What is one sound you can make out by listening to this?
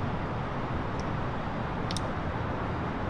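A cockpit lever clicks into place twice.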